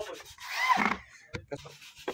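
A handheld power tool whirs briefly against wood.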